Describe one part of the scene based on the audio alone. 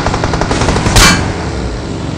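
A car crashes into another vehicle with a loud bang.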